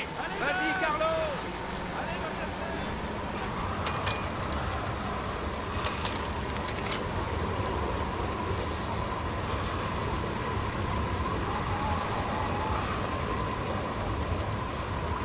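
Bicycle wheels whir steadily on a road as a pack of riders rolls along.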